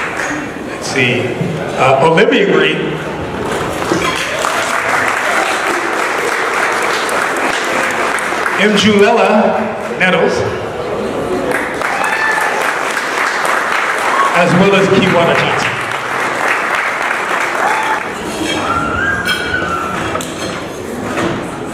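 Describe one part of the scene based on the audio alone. A middle-aged man speaks through a microphone and loudspeakers in a large, echoing room.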